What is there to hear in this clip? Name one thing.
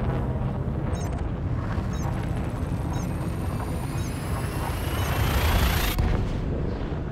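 A spaceship's jump drive whooshes, rising in pitch, then cuts off sharply.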